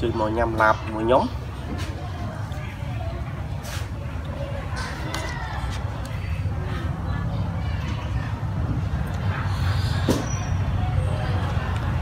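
A spoon scrapes and clinks against a plate.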